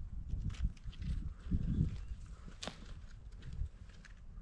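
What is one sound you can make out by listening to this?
Clumps of soil crumble and rustle in a person's hands.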